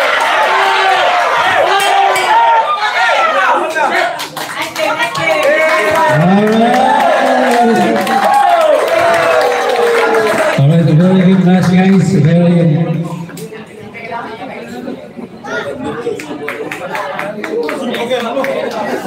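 A crowd of children shouts and cheers.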